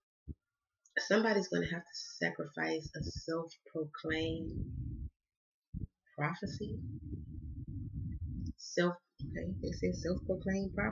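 A woman speaks calmly and closely into a microphone.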